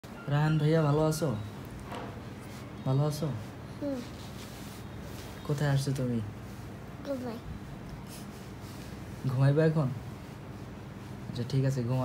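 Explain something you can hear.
A small boy talks and giggles up close.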